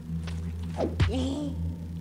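A blade strikes a body with a heavy thud.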